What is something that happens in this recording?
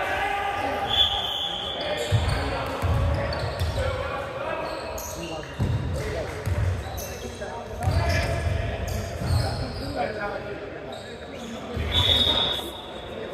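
Sneakers squeak sharply.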